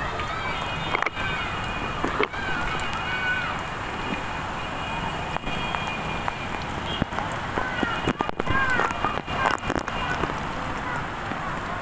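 Heavy rain pours down on rooftops and leaves outdoors.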